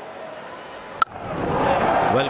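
A cricket bat cracks against a ball.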